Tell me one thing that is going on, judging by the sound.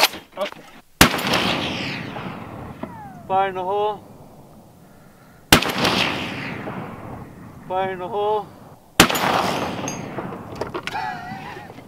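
A rifle fires loud single shots that echo and roll away across open ground.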